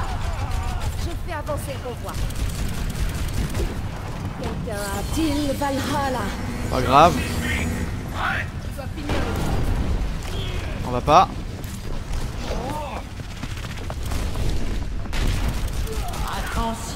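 Gunfire from a game rattles in quick bursts.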